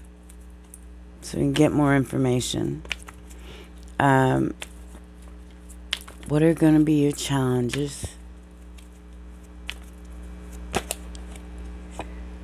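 Cards shuffle and slap softly together by hand.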